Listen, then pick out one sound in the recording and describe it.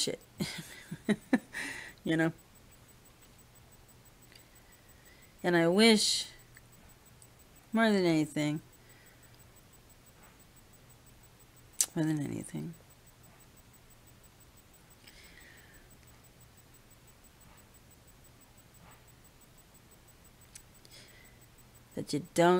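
A middle-aged woman talks close to a microphone in short bursts with pauses.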